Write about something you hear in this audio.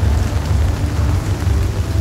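Rain patters on an umbrella.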